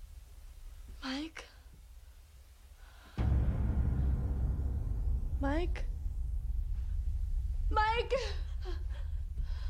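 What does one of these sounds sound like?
A young girl calls out nearby with alarm.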